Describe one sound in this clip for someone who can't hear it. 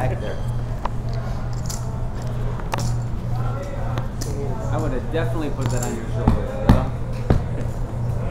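Poker chips clack and rattle as they are stacked and pushed.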